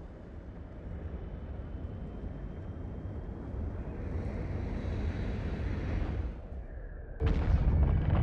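A spaceship engine rumbles deeply and grows louder.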